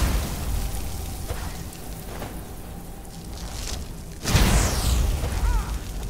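Crackling lightning magic bursts and sizzles.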